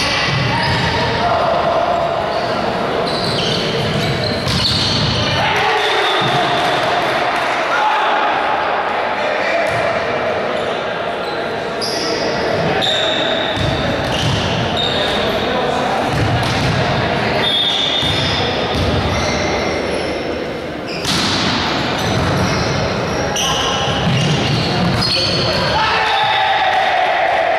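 A crowd of young spectators chatters and shouts in a large echoing hall.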